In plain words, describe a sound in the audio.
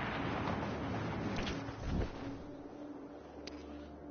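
A parachute snaps open.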